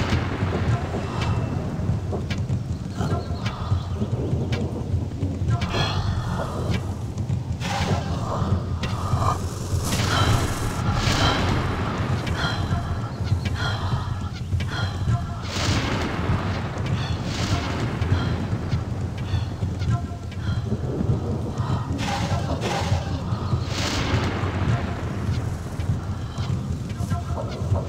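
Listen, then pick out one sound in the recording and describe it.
Heavy rain falls steadily.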